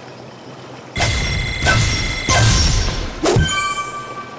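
A bright cheerful jingle chimes.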